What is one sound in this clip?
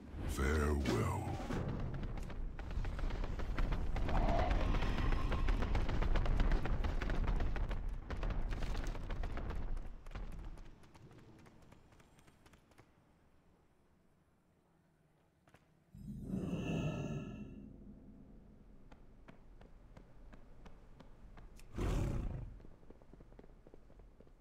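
A character's footsteps patter quickly on stone.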